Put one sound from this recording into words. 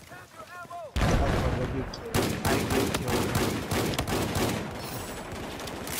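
A shotgun fires several loud, booming blasts.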